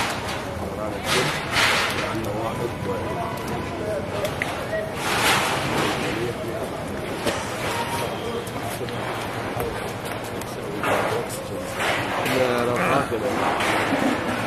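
A middle-aged man speaks firmly to a crowd, close by.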